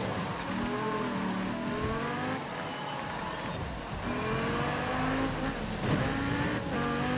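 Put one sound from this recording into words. A racing car engine revs high, rising and dropping as the gears change.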